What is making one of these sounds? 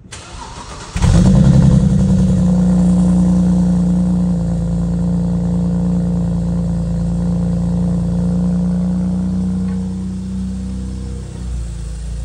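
A car engine starts and idles with a deep, steady rumble from the exhaust.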